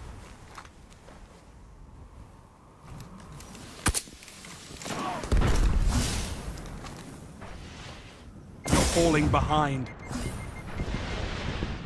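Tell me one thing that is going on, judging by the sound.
Gunfire cracks in short bursts.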